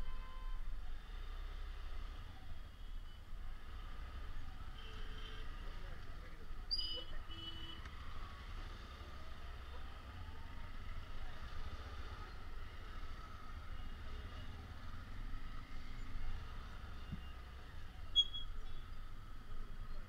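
Motorcycle and auto-rickshaw engines idle and rumble nearby in slow traffic.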